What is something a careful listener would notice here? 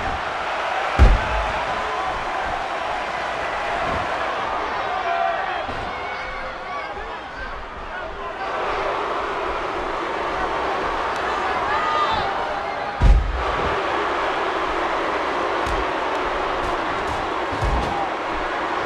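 Heavy thuds of bodies slam onto a wrestling mat.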